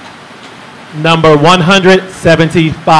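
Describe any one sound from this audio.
A middle-aged man speaks calmly into a microphone over loudspeakers.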